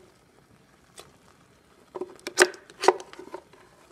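A plastic container knocks against the rim of a metal pot.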